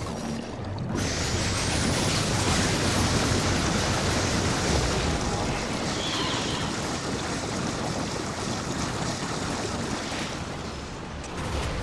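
A loud, roaring blast of energy rumbles steadily and then fades.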